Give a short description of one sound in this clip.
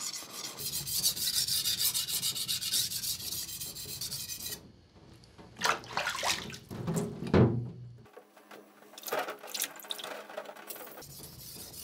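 A steel blade scrapes rhythmically back and forth on a wet whetstone.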